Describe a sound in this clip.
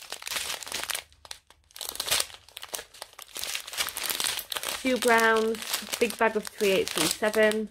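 Small plastic beads rattle inside a bag.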